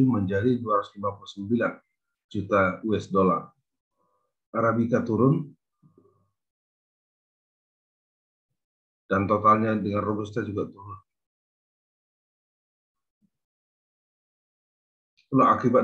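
A young man speaks calmly over an online call, in short phrases with pauses.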